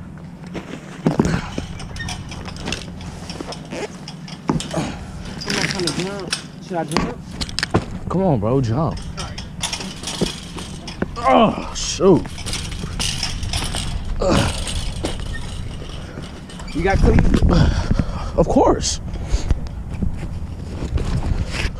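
A chain-link fence rattles and clanks as someone climbs over it.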